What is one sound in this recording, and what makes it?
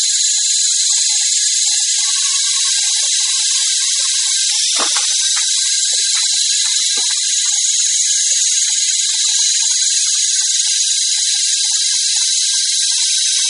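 A small electric motor whirs steadily.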